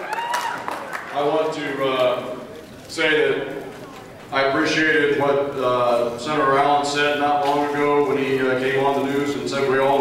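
A man speaks with animation into a microphone, heard over loudspeakers.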